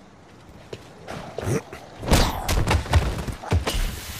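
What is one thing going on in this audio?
A body falls to the ground with a heavy thud.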